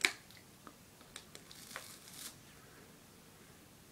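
A man bites and chews food.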